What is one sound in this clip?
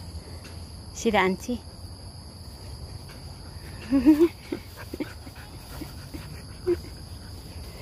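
A young dog yips and whines playfully, close by.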